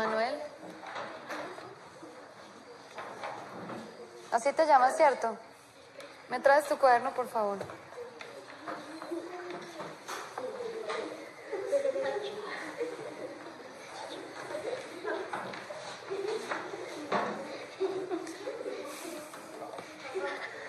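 Children murmur and giggle quietly.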